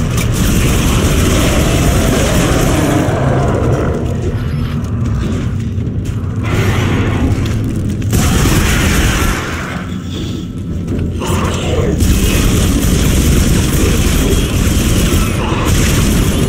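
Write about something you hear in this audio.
A weapon fires in short bursts.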